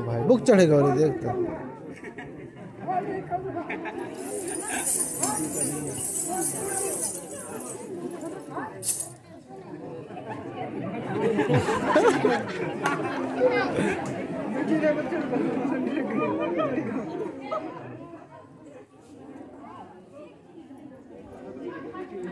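A large outdoor crowd chatters and calls out.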